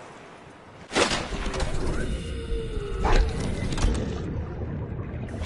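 Water splashes and bubbles as a diver plunges in.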